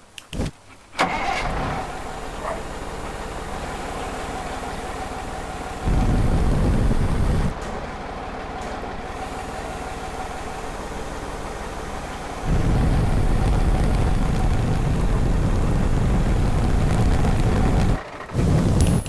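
A large mobile crane's diesel engine runs.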